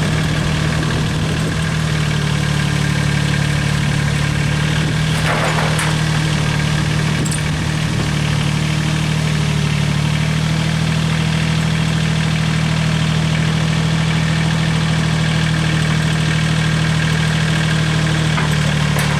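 A skid steer loader's diesel engine runs with a steady loud rumble close by.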